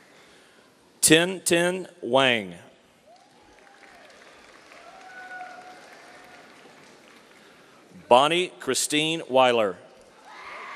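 A man reads out names loudly through a microphone and loudspeakers in a large echoing hall.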